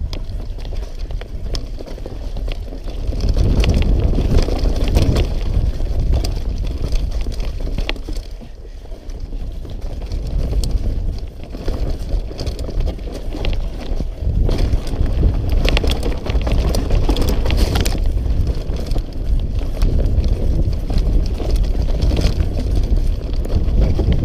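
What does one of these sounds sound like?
Bicycle tyres rumble and crunch over a dirt trail.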